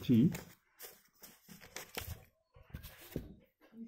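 Paper rustles as a notebook is moved.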